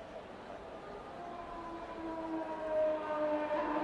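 A racing car engine roars closer and grows louder.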